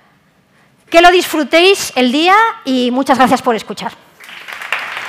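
A woman speaks with animation through a microphone.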